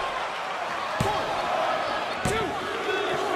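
A referee slaps the mat.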